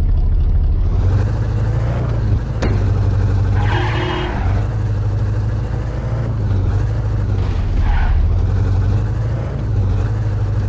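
A car engine drones as the car drives along.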